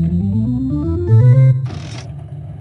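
A slot machine plays a quick rising chime jingle.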